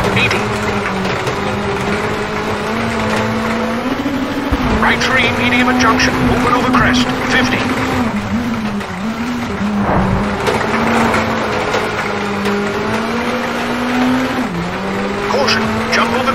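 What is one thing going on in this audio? A rally car engine roars steadily, with the pitch dipping at gear shifts.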